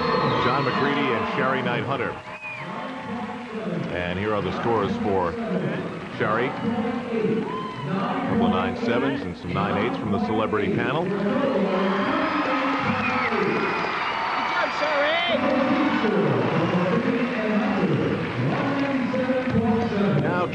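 A young man cheers and shouts with excitement.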